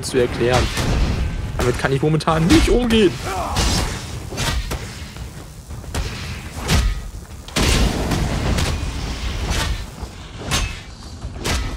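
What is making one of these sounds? Sword blows and magic blasts crack and thud in a fight.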